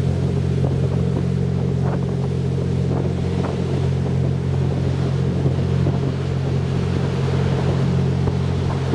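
A train hums steadily as it runs along the tracks.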